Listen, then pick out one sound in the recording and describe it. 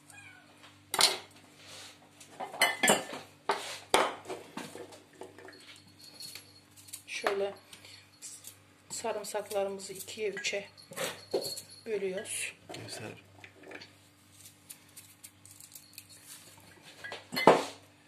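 Pieces drop and clink into a glass jar.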